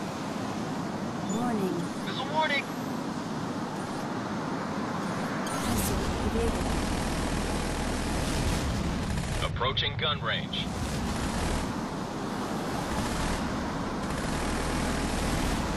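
Jet engines roar steadily.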